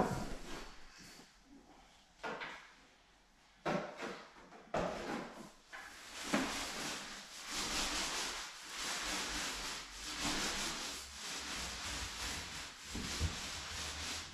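A paint roller rolls and scrapes across a wooden floor.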